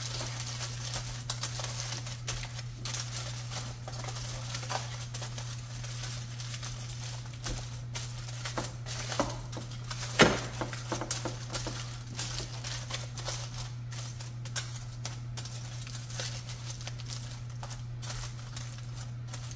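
Aluminium foil crinkles and rustles under hands.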